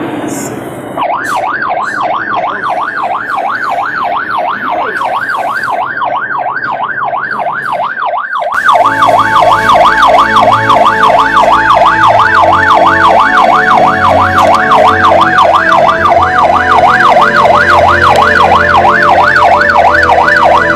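A siren wails loudly, rising and falling quickly.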